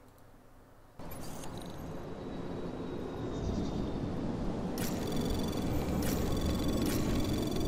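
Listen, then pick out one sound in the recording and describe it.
A low electronic hum grows slowly louder.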